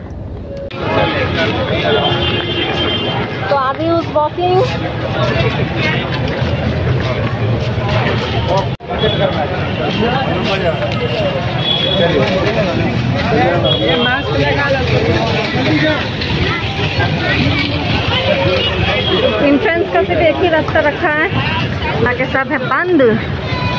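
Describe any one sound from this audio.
A crowd of people chatters all around, close by.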